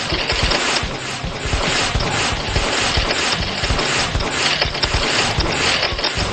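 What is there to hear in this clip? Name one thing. Video game guns fire rapid shots over and over, with low thuds.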